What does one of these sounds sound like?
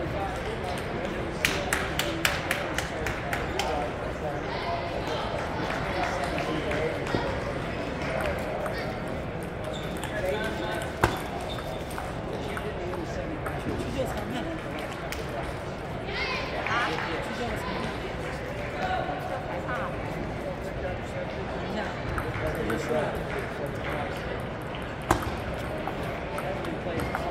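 Many distant voices murmur in a large echoing hall.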